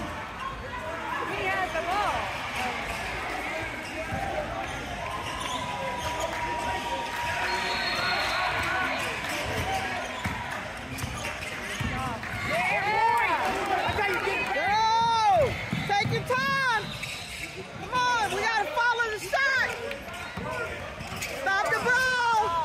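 A basketball thuds on a wooden floor.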